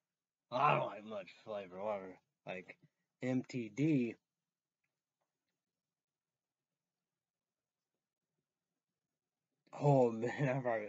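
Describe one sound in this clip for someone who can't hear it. A young man speaks close to the microphone, in short bursts with pauses.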